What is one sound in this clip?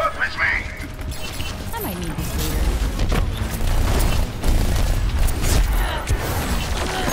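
Guns fire in rapid bursts with sharp electronic zaps.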